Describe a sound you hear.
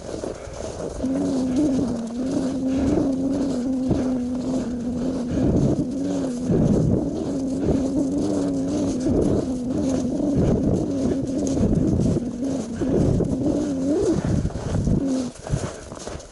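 A snowmobile engine drones steadily.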